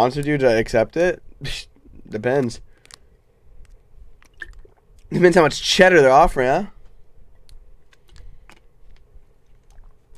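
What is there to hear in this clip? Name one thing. A young man gulps a drink from a bottle.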